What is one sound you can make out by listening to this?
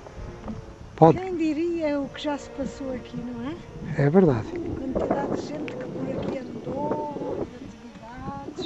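An elderly woman talks calmly and close by, outdoors.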